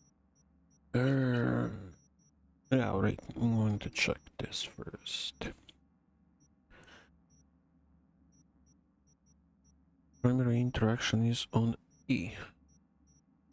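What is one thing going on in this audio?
A man talks calmly into a nearby microphone, in short bursts.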